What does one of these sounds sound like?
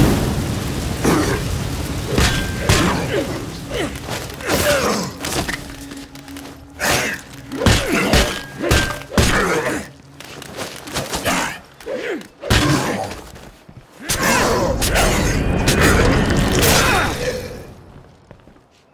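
Heavy blows thud and smack repeatedly.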